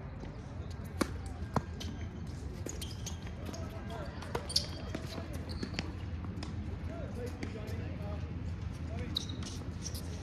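Paddles hit a ball with sharp pops.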